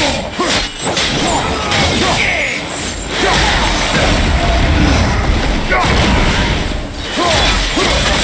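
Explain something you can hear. Flames burst and crackle.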